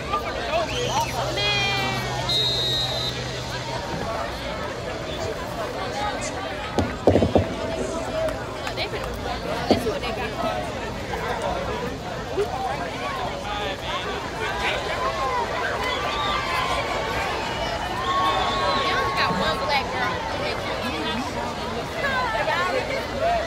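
A crowd of young men and women talk and shout outdoors.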